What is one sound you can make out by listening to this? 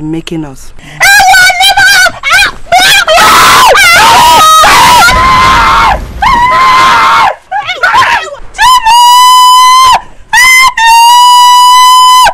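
A young woman screams and wails loudly close by.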